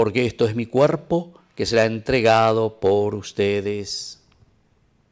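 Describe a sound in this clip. A man chants in a singing voice through a microphone.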